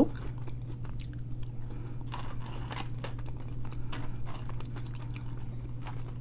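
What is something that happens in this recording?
Crisp fries crunch softly while being chewed.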